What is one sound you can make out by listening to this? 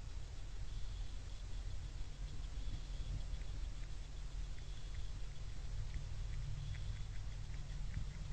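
A deer crunches corn as it eats from the ground nearby.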